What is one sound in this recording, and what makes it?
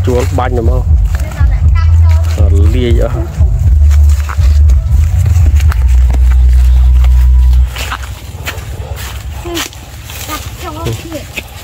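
Footsteps crunch on dry leaves and grass.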